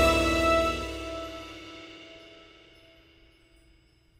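A short victory fanfare plays and fades out.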